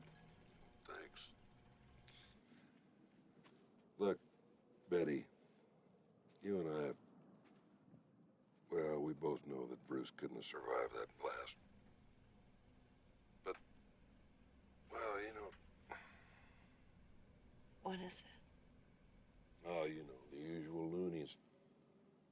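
A young woman speaks quietly and tensely into a phone, close by.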